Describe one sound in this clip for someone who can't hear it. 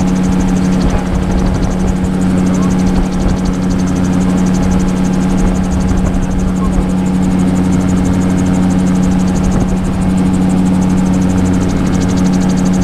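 An engine drones steadily and loudly.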